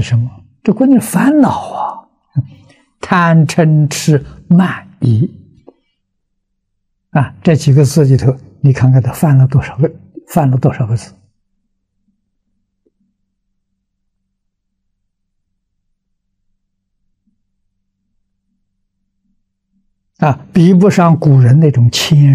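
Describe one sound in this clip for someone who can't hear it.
An elderly man speaks calmly and clearly into a close microphone, pausing often.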